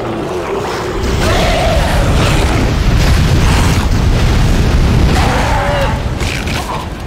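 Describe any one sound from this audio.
A weapon fires in a long, roaring burst of flame.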